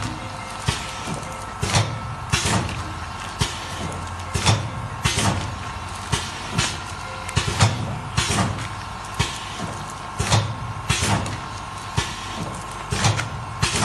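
Plastic sachets rustle and crinkle in a hand.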